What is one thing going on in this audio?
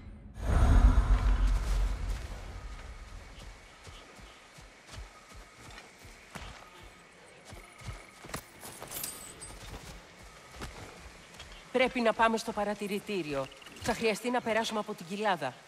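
Heavy footsteps tread on soft forest ground.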